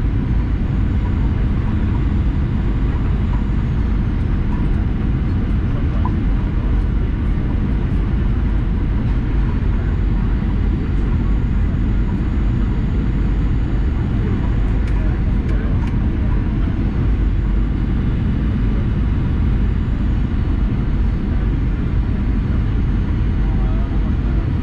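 Jet engines roar steadily inside an aircraft cabin.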